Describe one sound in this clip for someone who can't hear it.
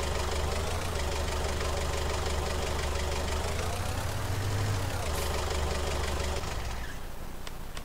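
A forklift engine hums and revs.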